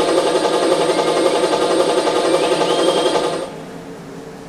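Loud, busy electronic game music plays.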